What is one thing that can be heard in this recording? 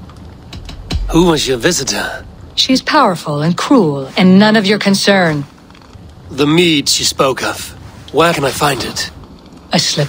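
A man asks a question in a calm, low voice.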